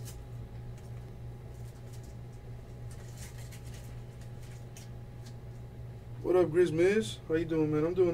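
Trading cards rustle and slide as they are flipped through by hand.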